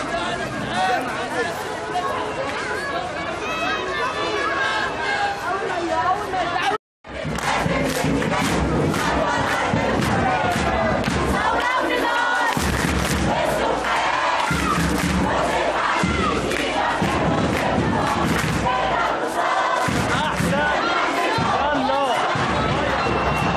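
A large crowd chants loudly in unison outdoors.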